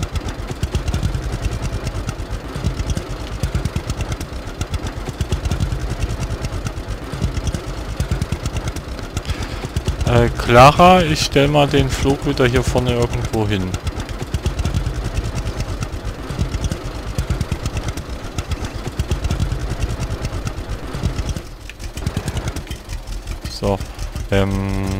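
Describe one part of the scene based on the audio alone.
A tractor engine chugs steadily at low speed.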